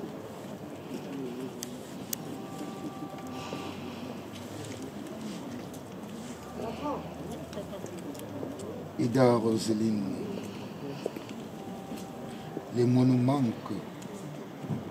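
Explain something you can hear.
A man reads out a prayer in a calm, low voice.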